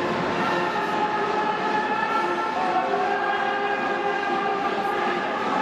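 A large crowd chants and cheers steadily in a stadium.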